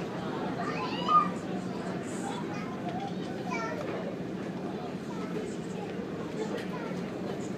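A boat's engine drones steadily nearby.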